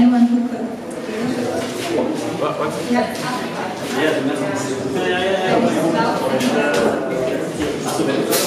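A bass guitar plays a low line.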